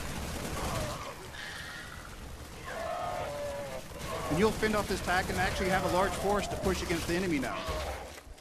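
Creatures screech and clash in a fight.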